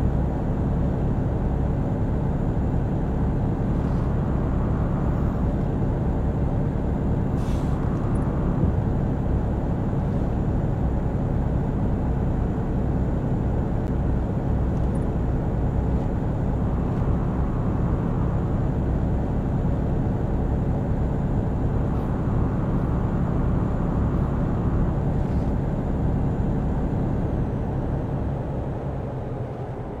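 A truck engine drones steadily at a low pitch.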